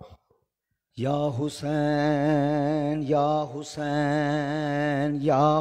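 A man chants loudly and steadily through a microphone.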